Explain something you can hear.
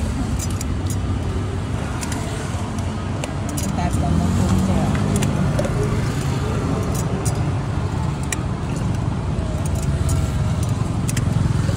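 A metal hand press clicks and squeezes limes.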